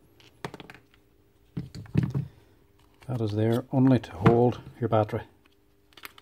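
Plastic tool housing parts clack and rattle as they are pulled apart.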